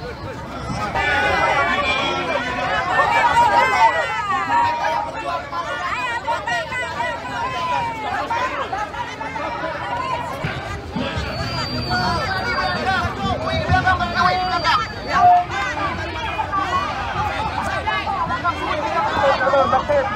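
A crowd of men and women chants and shouts together outdoors.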